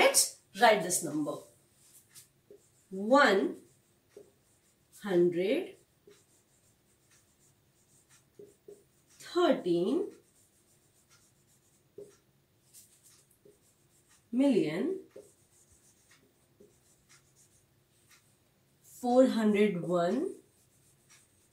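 A woman speaks slowly and clearly nearby, in short phrases with pauses.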